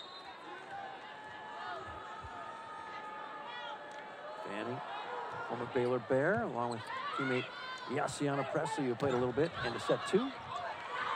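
A crowd cheers and shouts in a large echoing arena.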